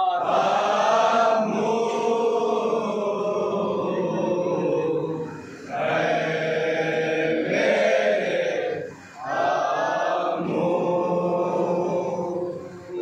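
A young man chants a mournful lament loudly into a microphone.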